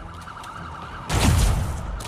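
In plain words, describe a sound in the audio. Laser beams fire with sharp zaps.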